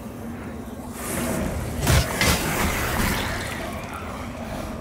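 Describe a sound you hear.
A magical burst crackles and whooshes loudly.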